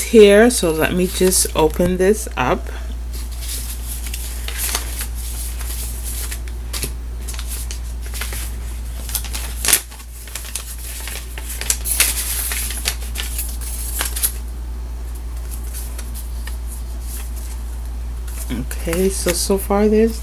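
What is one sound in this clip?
Paper cards rustle as a hand moves them.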